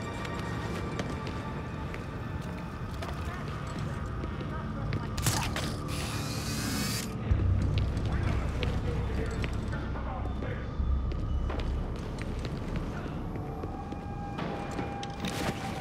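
Footsteps patter on a hard rooftop.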